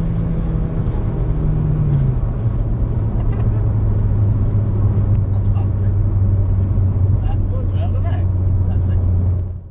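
Young men laugh and chatter inside the car.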